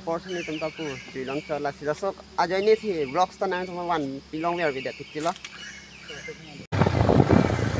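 A young man talks with animation close to the microphone.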